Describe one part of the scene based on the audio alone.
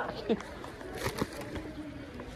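Plastic packaging crinkles as it is handled.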